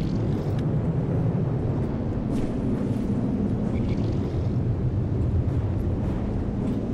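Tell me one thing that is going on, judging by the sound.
A sinking vessel rumbles underwater.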